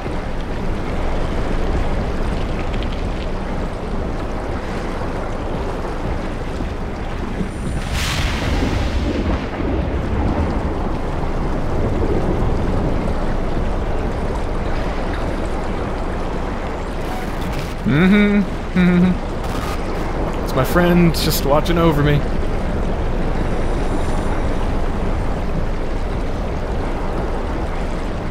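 Strong wind roars steadily outdoors in a blizzard.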